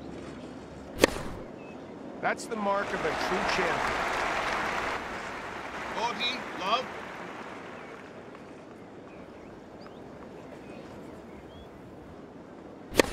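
A tennis ball is struck with a sharp pop.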